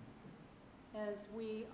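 A woman begins speaking calmly through a microphone in an echoing hall.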